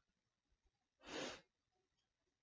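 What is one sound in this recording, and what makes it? A card slides softly across a cloth surface.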